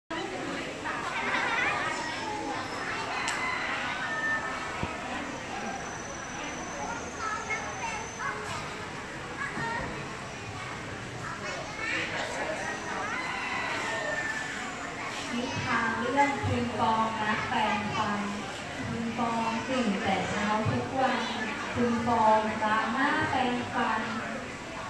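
Young children chatter and call out nearby in a large echoing hall.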